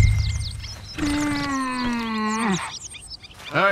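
A horse whinnies loudly nearby.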